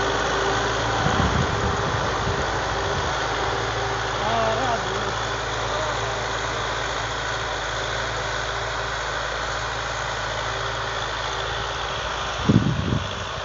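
A tractor engine drones steadily in the distance.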